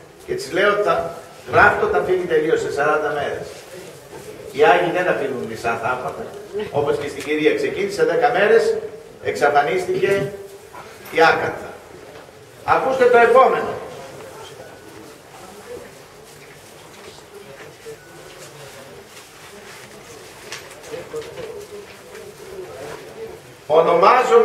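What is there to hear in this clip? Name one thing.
An elderly man speaks slowly and solemnly into a microphone, heard through loudspeakers in a room.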